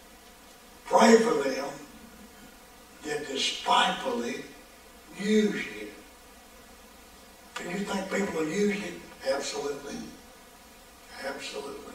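An elderly man speaks through a microphone with animation, in a large echoing room.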